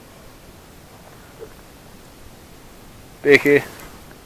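A hooked fish splashes at the water's surface.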